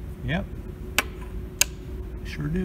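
Small plastic parts click and snap as they are handled.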